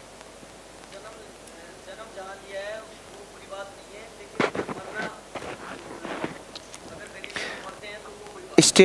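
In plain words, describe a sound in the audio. A young man answers from a distance, faint and unamplified.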